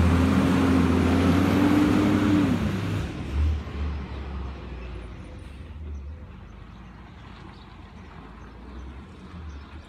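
A garbage truck drives away down the street and fades.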